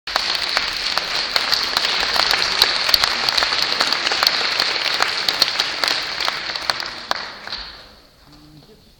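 An audience applauds loudly in a large echoing hall, then the clapping dies away.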